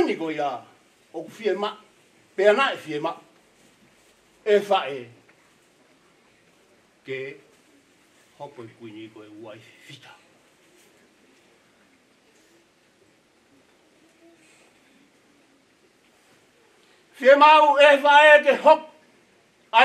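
A middle-aged man speaks with feeling into a microphone, pausing between phrases.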